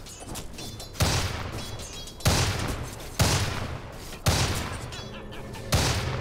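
Game combat effects burst with loud whooshing blasts.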